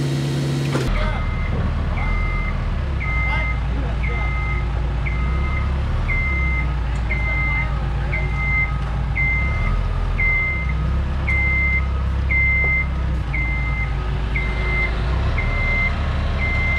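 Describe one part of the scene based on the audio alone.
A lift's warning alarm beeps in a steady, rapid rhythm.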